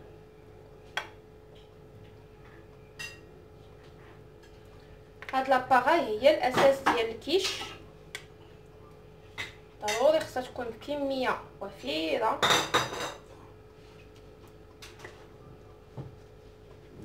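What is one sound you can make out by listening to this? A spoon clinks against a bowl.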